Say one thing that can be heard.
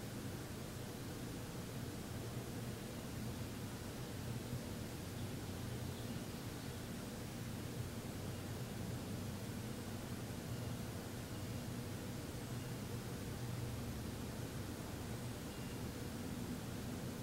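A man hums a low, steady drone close by.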